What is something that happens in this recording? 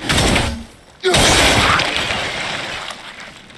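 A heavy axe strikes a pillar with a loud, crashing burst.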